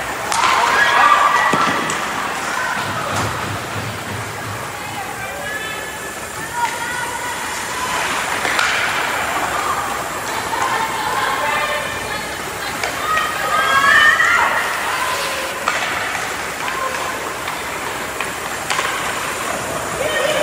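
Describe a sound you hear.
Skates scrape and carve across the ice in a large echoing arena.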